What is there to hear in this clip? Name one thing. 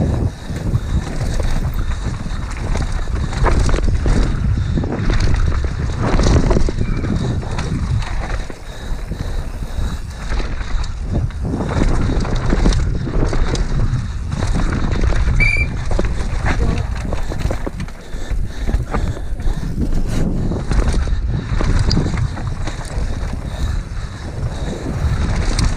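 Bicycle tyres rumble and skid over a bumpy dirt track.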